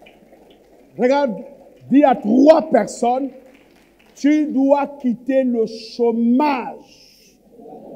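A man speaks loudly and with animation through a microphone in a large echoing hall.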